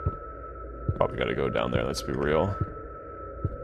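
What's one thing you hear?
A man speaks quietly and close to a microphone.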